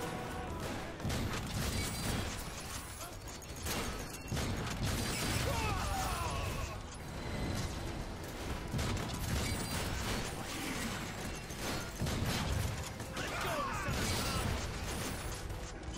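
Explosions rumble and crack.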